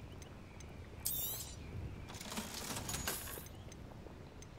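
A bright magical chime shimmers and fades.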